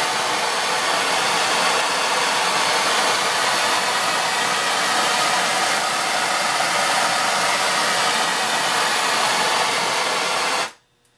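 A gas torch roars steadily up close.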